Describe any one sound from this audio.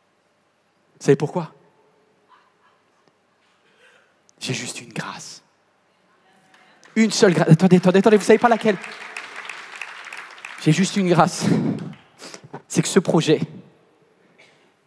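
A man speaks calmly into a microphone in a large hall, with pauses.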